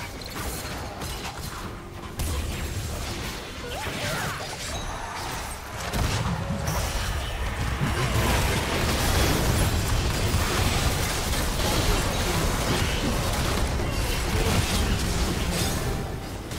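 Video game spells and attacks crackle and boom in a busy battle.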